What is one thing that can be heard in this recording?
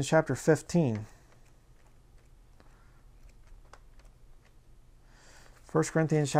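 Book pages rustle as a man turns them.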